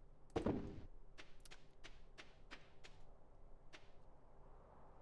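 Light footsteps tap quickly on snow.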